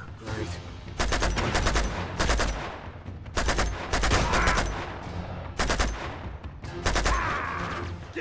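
Rifle fire rattles in rapid bursts.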